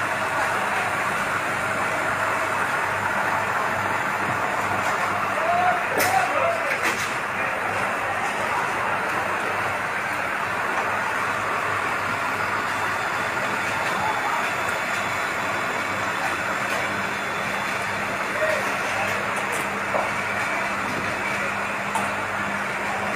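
Water rushes steadily from hoses.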